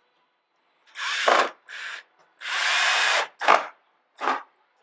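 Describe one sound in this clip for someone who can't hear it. A cordless drill whirs in short bursts, driving a screw into wood.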